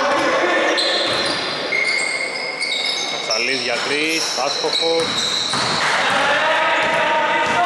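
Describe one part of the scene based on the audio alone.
Sneakers squeak sharply on a court floor in a large echoing hall.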